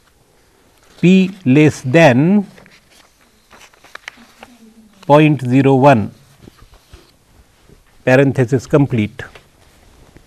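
An elderly man speaks calmly and closely into a microphone, in short phrases.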